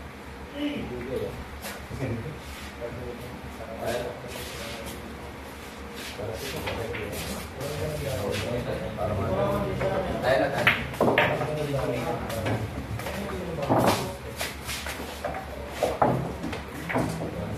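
Young men talk and chat nearby.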